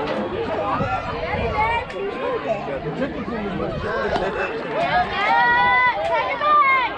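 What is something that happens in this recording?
Children and adults shout and cheer nearby outdoors.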